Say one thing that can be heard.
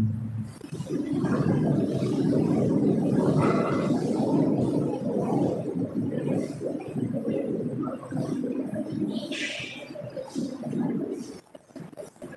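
A young man reads out through a microphone.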